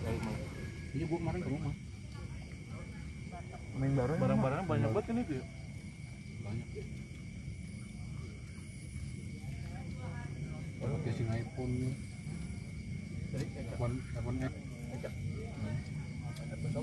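Young men talk and murmur nearby in a group.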